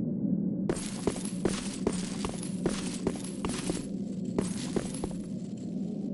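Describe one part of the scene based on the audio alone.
Heavy footsteps thud quickly on stone.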